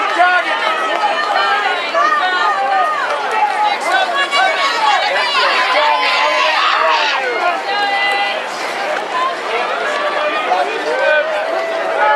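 A large outdoor crowd cheers and shouts excitedly.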